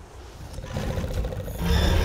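A blade strikes with a sharp clang.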